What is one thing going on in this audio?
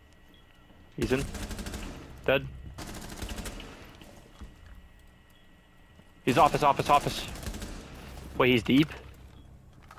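Rapid gunshots fire in short, loud bursts.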